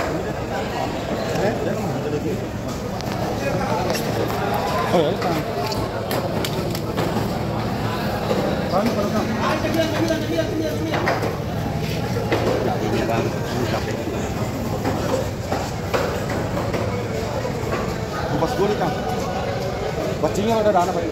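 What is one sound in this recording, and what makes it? A crowd murmurs and chatters nearby.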